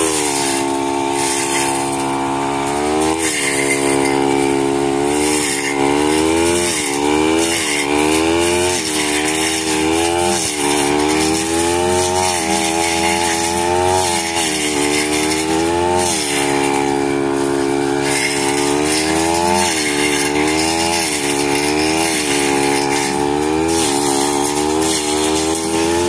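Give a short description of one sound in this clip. A petrol brush cutter engine drones loudly and revs up and down again and again.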